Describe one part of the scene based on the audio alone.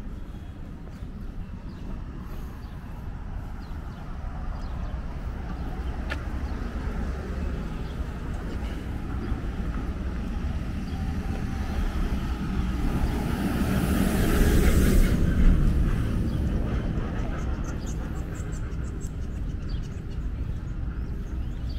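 Outdoors, a steady low rumble of city traffic and wind goes on.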